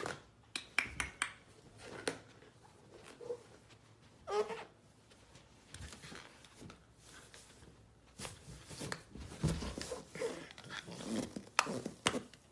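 A puppy bumps and nudges a balloon, making soft rubbery thumps and squeaks.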